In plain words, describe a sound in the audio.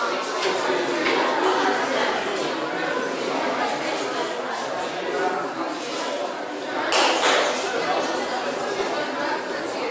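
A crowd of people chatters throughout a large, echoing hall.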